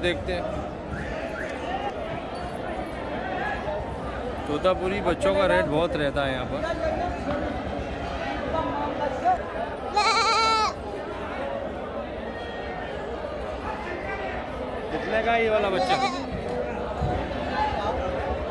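A crowd of men chatters in the background outdoors.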